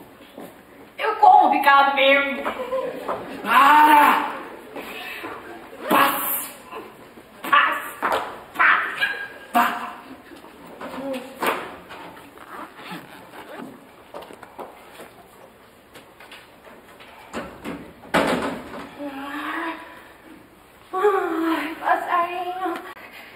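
Young women sing and speak with animation on a stage.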